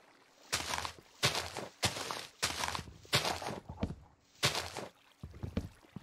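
Leaves crunch and rustle in short bursts as they are broken one after another.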